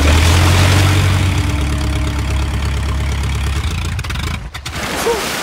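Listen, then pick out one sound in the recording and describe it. Propeller engines drone with a deep, steady roar.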